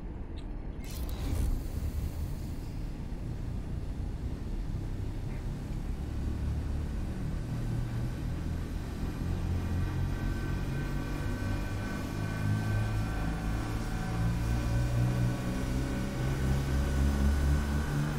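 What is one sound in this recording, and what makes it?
A spacecraft's engine rumbles low and steady, slowly growing louder.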